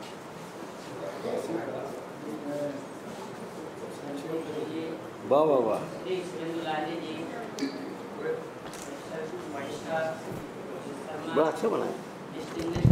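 A man speaks calmly into a microphone, heard through loudspeakers in an echoing hall.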